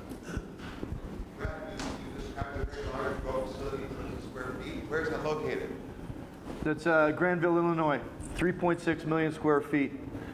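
A man speaks into a microphone with animation, heard through loudspeakers in a large room.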